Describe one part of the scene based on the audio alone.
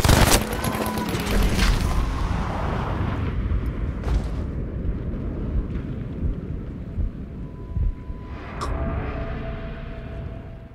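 Wind rumbles steadily across an open mountainside.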